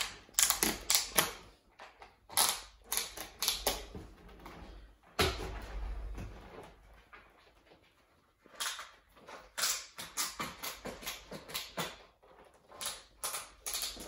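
Plastic ski boot buckles click and snap shut.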